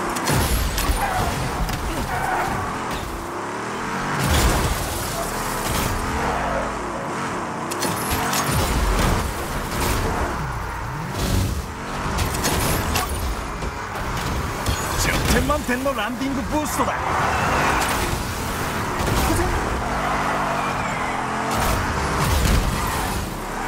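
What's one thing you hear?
Car engines roar and rev.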